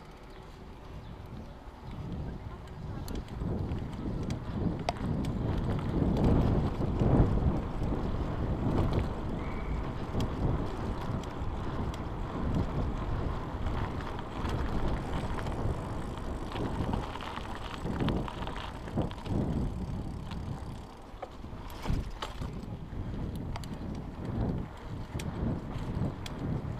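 Wind rushes loudly past a moving bicycle.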